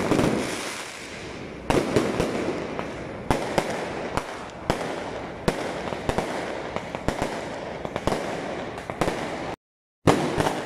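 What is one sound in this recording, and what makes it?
Fireworks pop and burst overhead.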